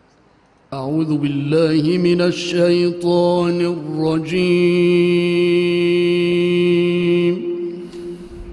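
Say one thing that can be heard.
A man chants a long, drawn-out melodic recitation into a microphone, his voice echoing in a large hall.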